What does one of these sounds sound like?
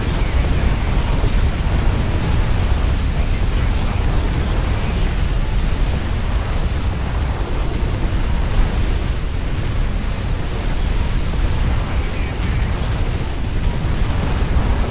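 Cannon fire and explosions boom in a strategy game battle.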